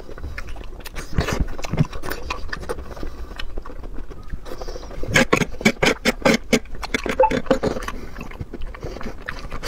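A man chews and slurps food loudly close by.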